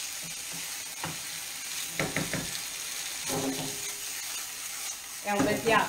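A spoon scrapes and clatters against a pan.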